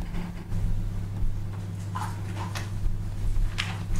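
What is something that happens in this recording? A stylus taps and scrapes on a glass tablet.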